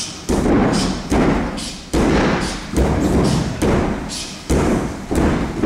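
A heavy ball slaps into hands again and again in a steady rhythm.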